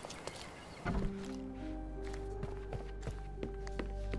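Footsteps thud up wooden stairs.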